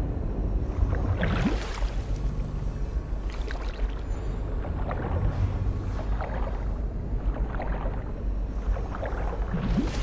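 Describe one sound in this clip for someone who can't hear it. Water splashes and sloshes with swimming strokes.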